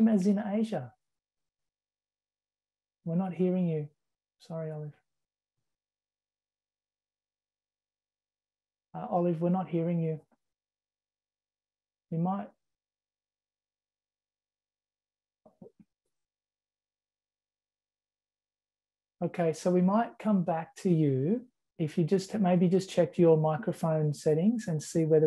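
An elderly woman speaks calmly over an online call, in short bursts with long pauses.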